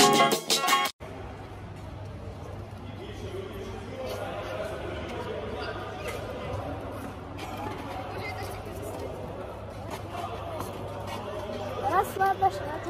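Children chatter and call out in a large echoing hall.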